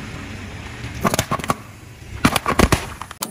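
Soda cans burst and spray under a tyre.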